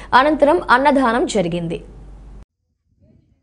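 A young woman reads out the news calmly through a microphone.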